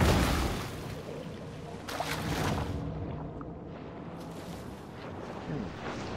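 Muffled underwater rumble surrounds a swimming shark.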